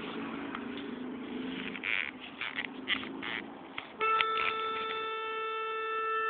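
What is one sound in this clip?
A melodica plays short notes and then holds a steady chord.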